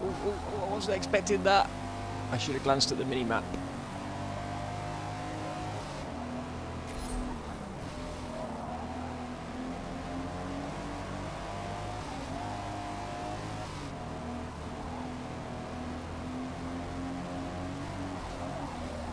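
A car engine drones steadily and revs as it speeds up.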